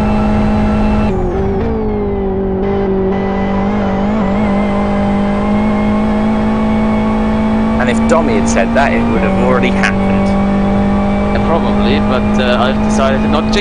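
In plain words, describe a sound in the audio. A race car engine drones steadily, shifting pitch as gears change.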